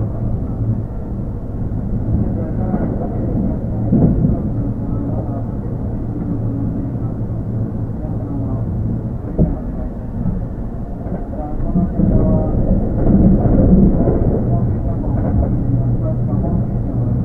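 An electric train hums and rumbles close by.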